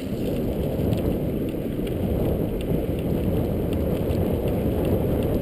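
Wind rumbles steadily against a microphone outdoors.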